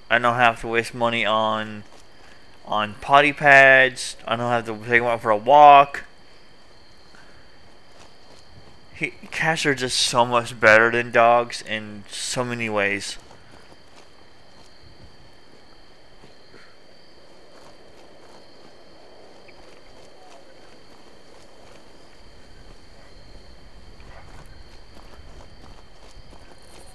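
Footsteps crunch on gravel and dry ground.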